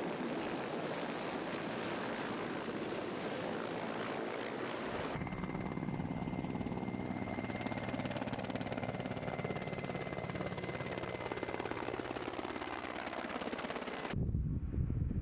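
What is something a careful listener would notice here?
A helicopter's rotor thumps loudly overhead as it flies past.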